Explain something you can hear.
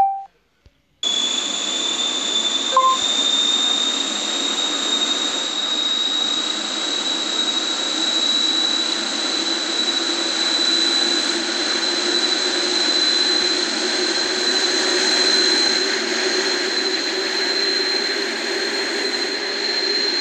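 A jet engine whines and roars steadily.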